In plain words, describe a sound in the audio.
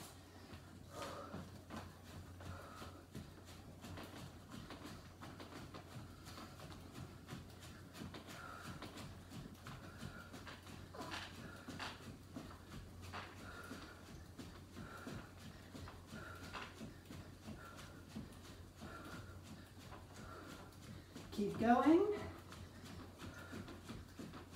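Sneakers thump softly on a floor mat in a steady rhythm.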